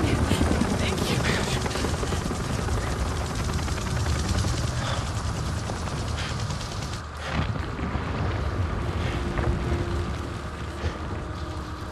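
Fire roars and crackles nearby.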